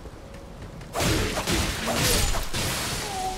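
Blades clash and strike with loud, sudden blows.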